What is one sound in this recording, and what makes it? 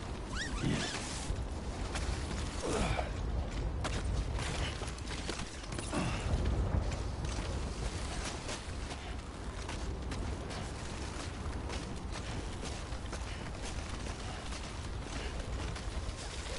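Boots scrape and knock against rock.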